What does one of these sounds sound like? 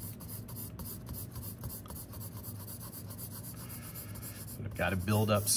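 A pencil scratches across paper in quick, even strokes.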